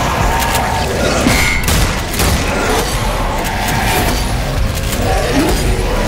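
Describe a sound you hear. A shotgun fires in loud, sharp blasts.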